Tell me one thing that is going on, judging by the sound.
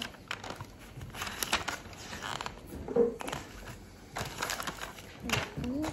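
Paper pages rustle as a notebook is flipped.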